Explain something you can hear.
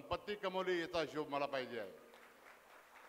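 A middle-aged man speaks forcefully into a microphone over loudspeakers, echoing in a hall.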